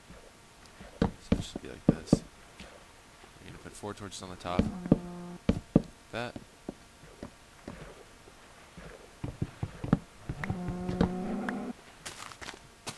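Wooden blocks knock and thud as they are placed and broken.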